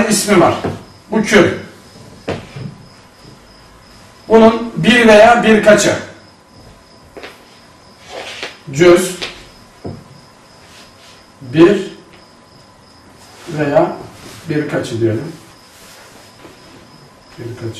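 A man speaks calmly in bursts with pauses, close by.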